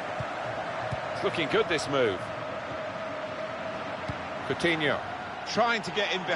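A stadium crowd roars steadily in a large open arena.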